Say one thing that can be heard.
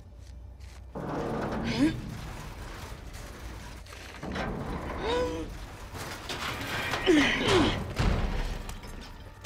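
A heavy metal shelf scrapes and grinds as it is pushed aside.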